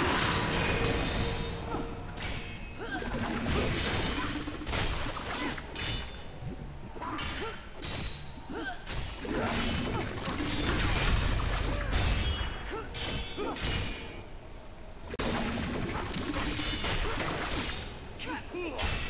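Weapon blows strike repeatedly in a fast-paced fight.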